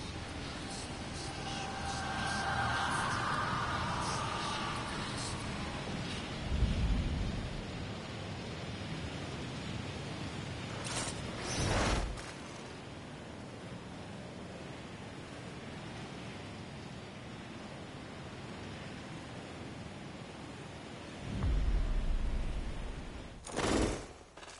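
Wind rushes past loudly and steadily during a fall through the air.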